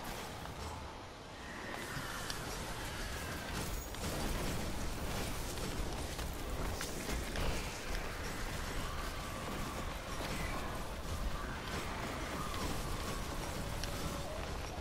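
Explosions and energy blasts boom.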